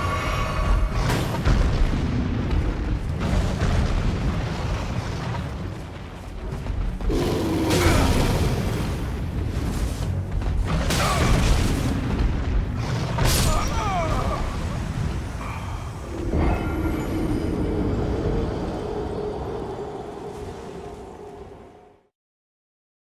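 A huge beast stomps and thuds heavily.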